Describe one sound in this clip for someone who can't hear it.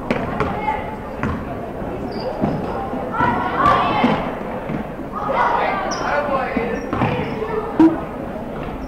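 A basketball bounces on a hard court floor.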